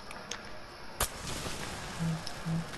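A flare hisses as it burns.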